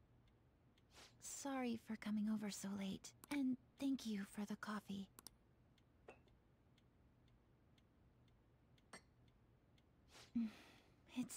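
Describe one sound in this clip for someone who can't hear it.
A young woman speaks softly and politely.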